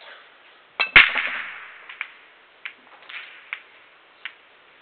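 Billiard balls clack against each other and the cushions as they scatter.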